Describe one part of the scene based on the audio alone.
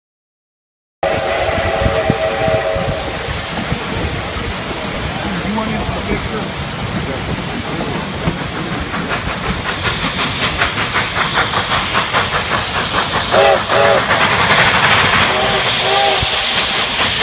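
A steam train whistle blows in short and long blasts.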